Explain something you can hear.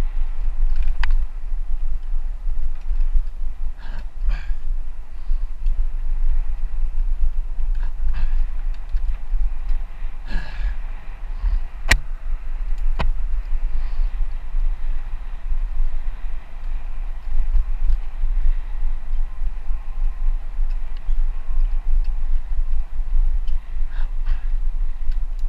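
A bicycle rattles and clanks over bumps now and then.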